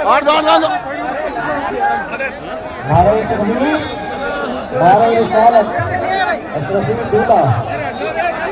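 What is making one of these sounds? A large crowd of men chants and cheers loudly outdoors.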